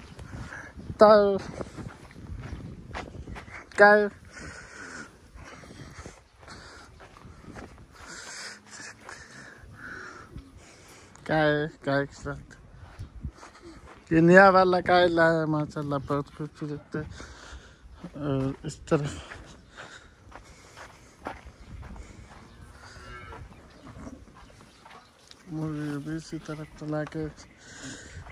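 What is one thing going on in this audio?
Cows moo loudly nearby, in short and long calls.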